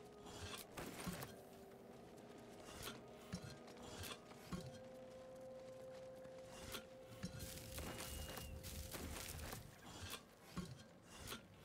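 Short item clicks and clinks sound repeatedly.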